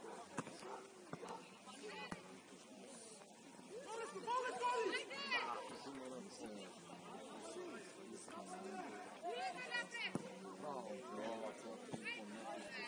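Spectators chatter and call out from the sideline.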